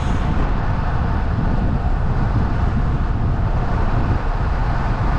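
Wind rumbles and buffets steadily outdoors.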